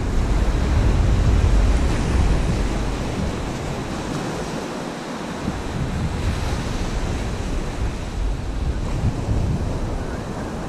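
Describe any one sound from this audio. Waves break and wash up a beach.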